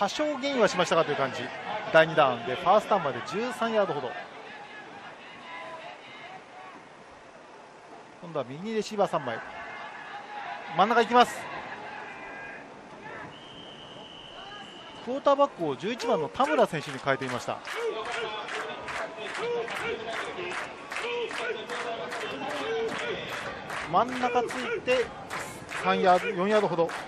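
A crowd of young men cheers from the sideline.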